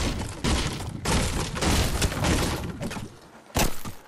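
A pickaxe strikes and breaks through wooden boards.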